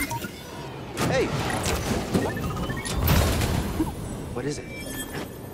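A metal chest creaks and clanks open.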